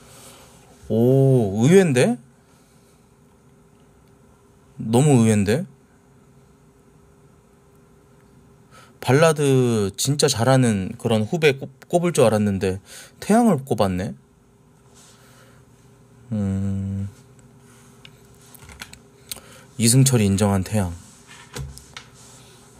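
A man speaks close to a microphone in short bursts, with pauses between.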